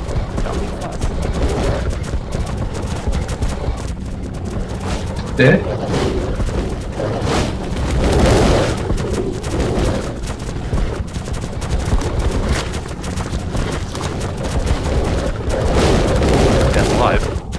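Animal paws pad over rocky ground in a cave.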